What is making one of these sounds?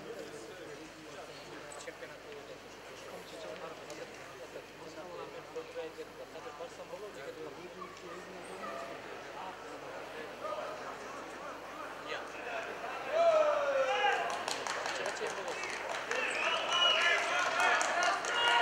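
A crowd murmurs and shouts in a large echoing hall, growing louder toward the end.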